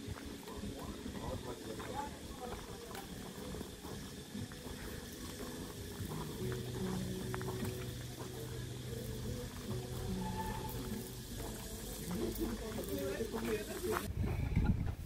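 Walking poles tap and scrape on a gravel path.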